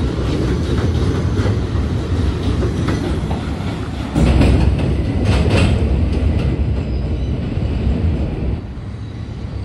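A subway train rumbles loudly along the tracks as it pulls away.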